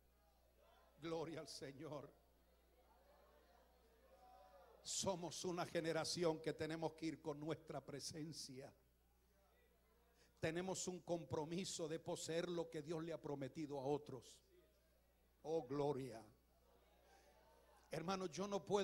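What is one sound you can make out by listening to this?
An elderly man preaches with animation into a microphone over loudspeakers, in bursts with pauses.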